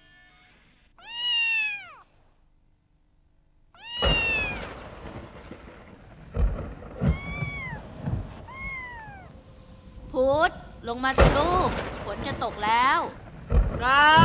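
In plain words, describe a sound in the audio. A kitten meows repeatedly, close by.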